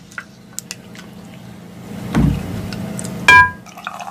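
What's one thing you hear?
A drink is poured into a glass.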